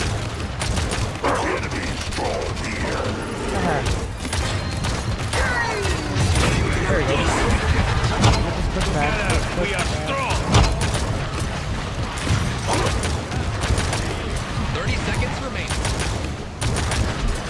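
Explosions and impacts crackle during a frantic fight.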